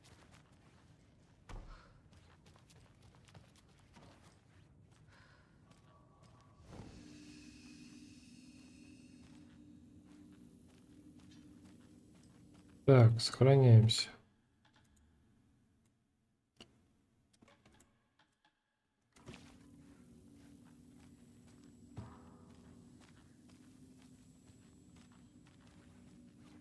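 Footsteps walk slowly across a hard floor.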